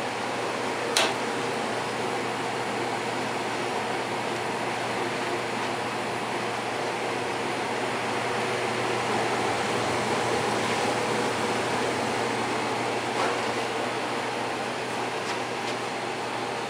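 A furnace runs with a steady roar.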